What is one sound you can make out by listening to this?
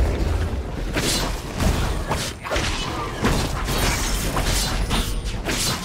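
Fantasy combat effects whoosh and crackle in a busy fight.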